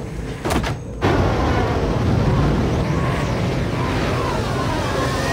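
A spacecraft's engines roar steadily as it hovers.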